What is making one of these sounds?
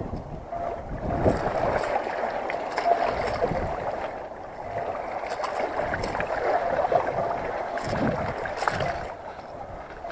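Small waves splash and wash against rocks close by.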